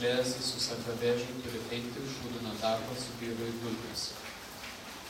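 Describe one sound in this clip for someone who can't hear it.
A young woman reads aloud calmly into a microphone.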